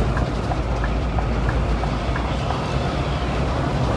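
Another bus passes close alongside.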